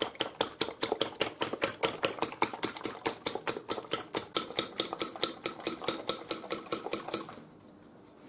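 A fork beats eggs quickly, tapping against a plate.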